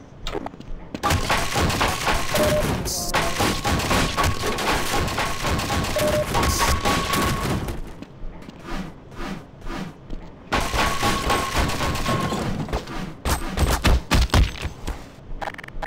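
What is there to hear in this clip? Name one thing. A crowbar smashes repeatedly into wooden crates with loud splintering cracks.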